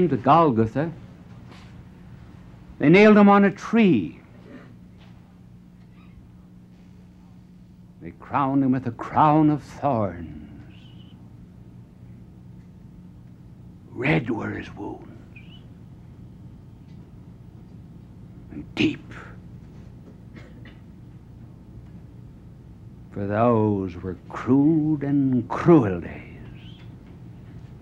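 An elderly man speaks dramatically in slow, emphatic bursts with long pauses, heard through a microphone.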